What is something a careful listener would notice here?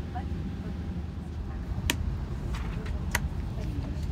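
A compartment lid clicks open.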